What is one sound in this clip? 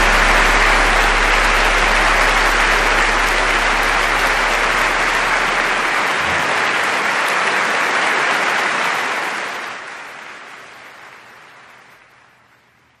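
A large audience applauds loudly and the applause slowly fades.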